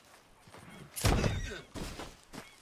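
A horse crashes heavily to the ground.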